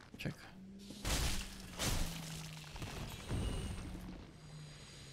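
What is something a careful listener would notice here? A sword swings with a whoosh and strikes.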